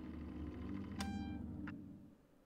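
An electronic beep sounds briefly from a control panel.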